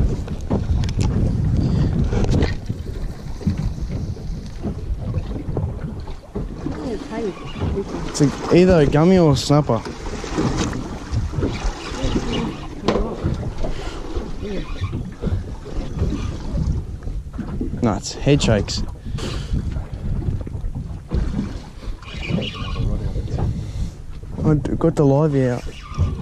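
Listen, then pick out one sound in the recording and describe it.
Wind blows over the microphone outdoors.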